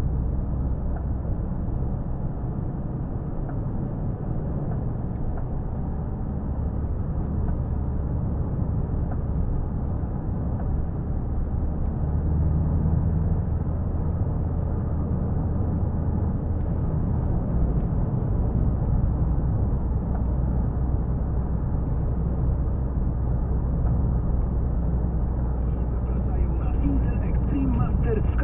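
Tyres roll over the road with a low, steady rumble.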